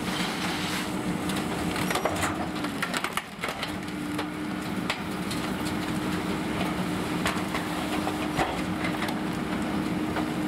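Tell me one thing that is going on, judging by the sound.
Trash bags and bins thump and rattle as they are loaded into a truck.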